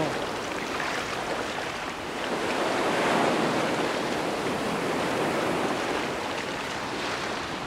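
Waves wash steadily onto a shore.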